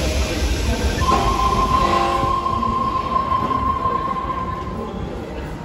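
A door warning tone sounds steadily as train doors begin to close.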